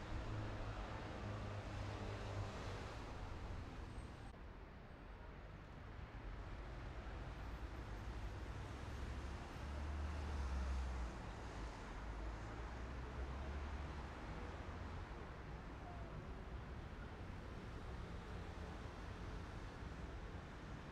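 A car drives on asphalt, its engine and tyres rumbling as heard from inside.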